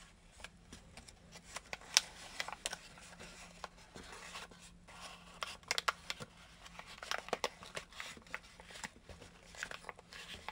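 Paper crinkles and rustles as hands fold it, close by.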